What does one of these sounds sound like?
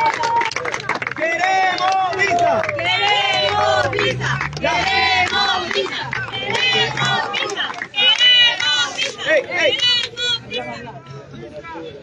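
A crowd of men and women chant together in unison.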